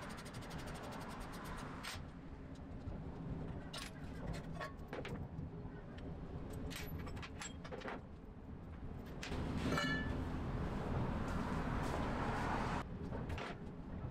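Metal parts clank and knock as a brake disc is pulled off a wheel hub.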